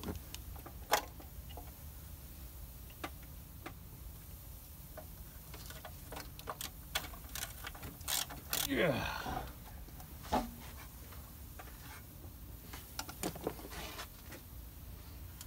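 Plastic and rubber engine parts click and knock.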